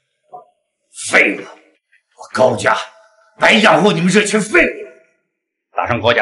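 A middle-aged man shouts angrily.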